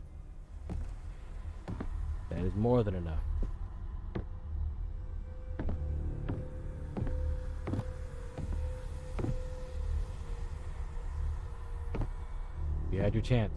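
Slow footsteps thud on a hard floor at a steady pace.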